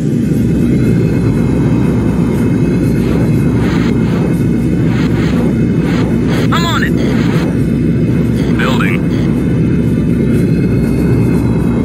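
A deep jet thruster roars steadily.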